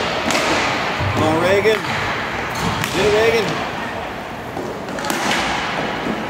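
A stick strikes a puck with a sharp clack.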